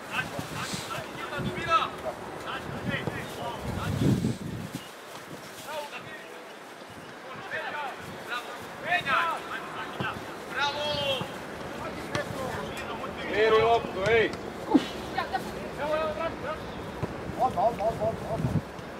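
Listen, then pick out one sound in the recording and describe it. Young men shout to each other outdoors across a playing field.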